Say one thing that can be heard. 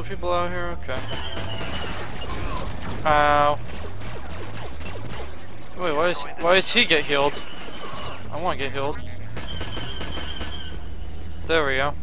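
Blaster rifles fire in quick bursts.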